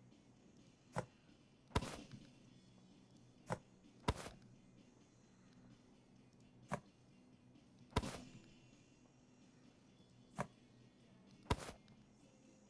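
Small objects knock sharply as they are set down.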